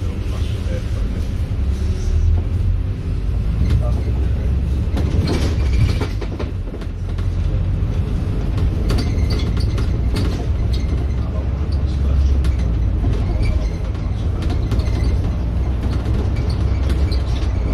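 A bus engine rumbles steadily as it drives along a road.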